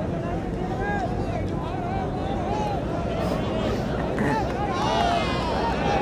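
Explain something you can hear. A large outdoor crowd of men chatters and shouts loudly.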